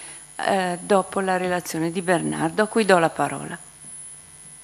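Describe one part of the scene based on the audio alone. An elderly woman speaks calmly into a microphone, heard through a loudspeaker in a large room.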